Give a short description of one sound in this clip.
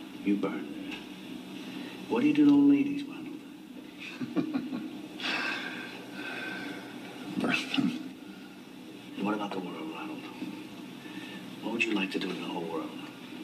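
A middle-aged man speaks in a low, earnest voice nearby.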